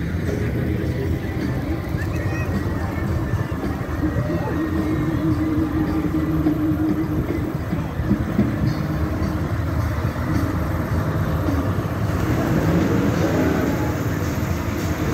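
A large diesel engine rumbles loudly close by.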